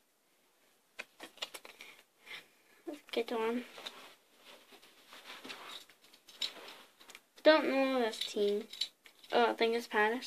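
Trading cards rustle and click as they are shuffled in hands.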